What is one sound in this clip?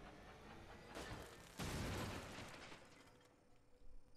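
A loud burst like a blast or shot rings out and fades.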